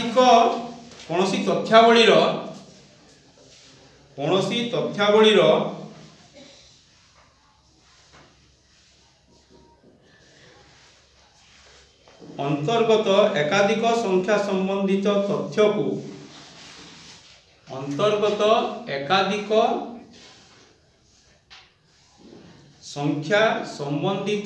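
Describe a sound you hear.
A man speaks calmly in bursts, close by, in a room with a slight echo.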